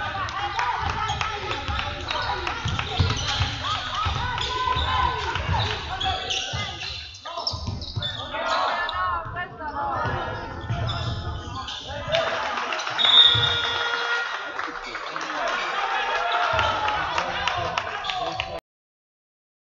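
Spectators murmur and call out in an echoing hall.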